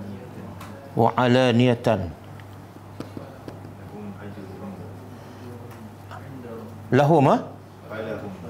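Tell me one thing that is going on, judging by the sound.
A middle-aged man speaks with animation into a microphone.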